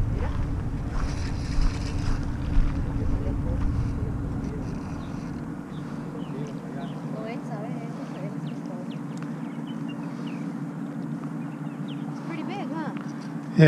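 River water flows and laps against a concrete bank.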